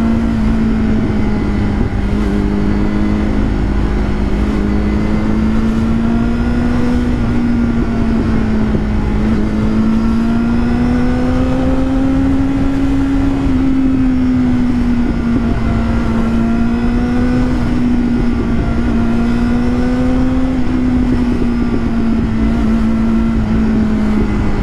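A motorcycle engine hums steadily, rising and falling slightly in pitch.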